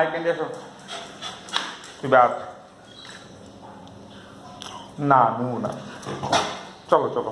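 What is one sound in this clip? A dog barks and howls loudly close by.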